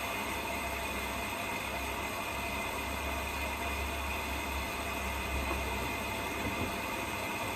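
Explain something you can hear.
Water sloshes inside a washing machine.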